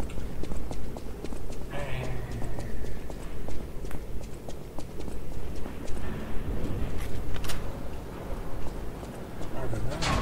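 A young man talks calmly and close to a microphone.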